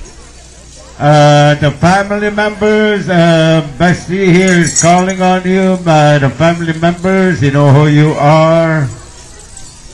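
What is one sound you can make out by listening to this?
A man sings a slow song loudly, close by.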